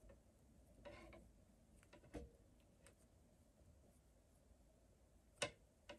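Fingers softly rustle and handle yarn up close.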